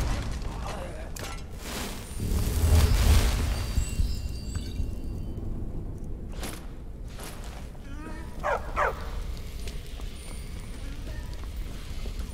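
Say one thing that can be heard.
A magical spell crackles and hums.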